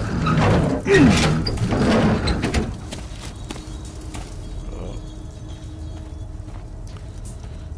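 A fire roars low and steady in a furnace.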